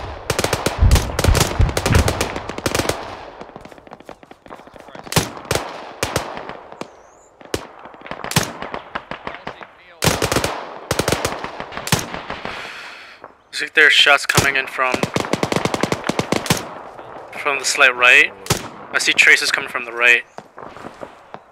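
Rifle shots crack in bursts, echoing outdoors.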